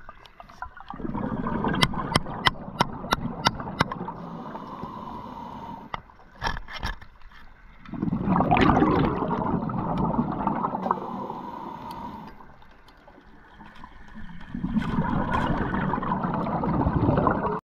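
A diver's breathing bubbles roar and gurgle in bursts.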